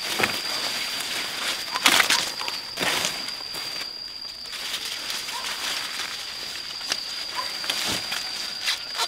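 Corn leaves rustle as someone moves through tall stalks.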